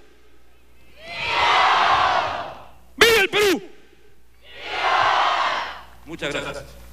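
A large group of young men shouts back in unison.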